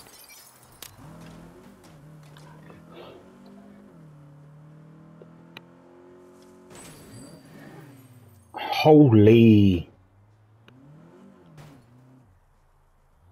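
A car engine revs and hums as the car drives.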